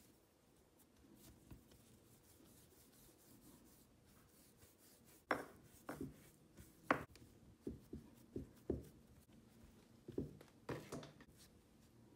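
Hands knead and roll dough on a mat with soft thuds.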